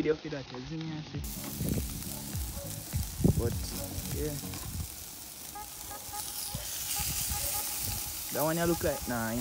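Chicken sizzles on a hot grill.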